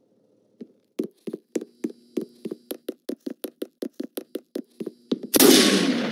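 A rifle fires rapid shots in quick succession.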